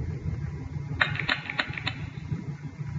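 A game plays a quick burst of chiming card sound effects.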